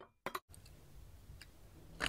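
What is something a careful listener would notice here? Milk pours and splashes into a glass.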